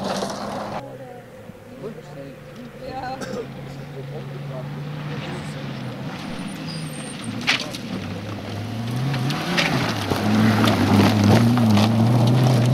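A second rally car engine revs and roars as it approaches and passes.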